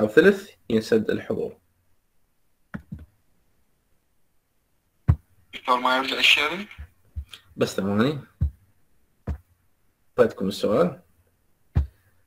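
A young man speaks calmly in bursts over an online call, with long pauses.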